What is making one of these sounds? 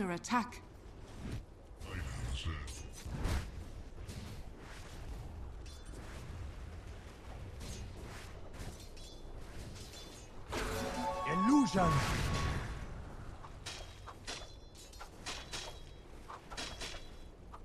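Game spell effects and weapon hits clash and crackle in quick bursts.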